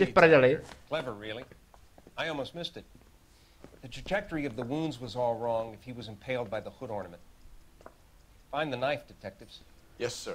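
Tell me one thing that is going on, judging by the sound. An elderly man speaks calmly and clearly.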